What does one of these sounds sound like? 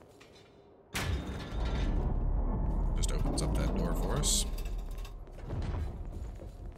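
Heavy blades swing and clash in a close fight.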